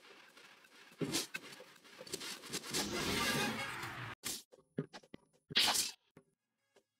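A magical energy blast whooshes and crackles in bursts.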